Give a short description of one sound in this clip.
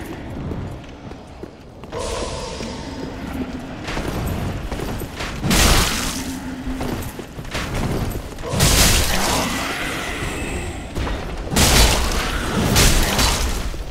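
Armoured footsteps clatter on stone steps.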